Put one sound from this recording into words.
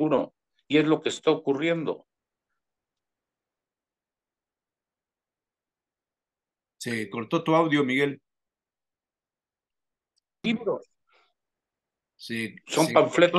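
An elderly man speaks calmly over an online call, in bursts with long pauses.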